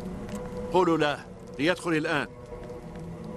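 An elderly man speaks loudly and dramatically.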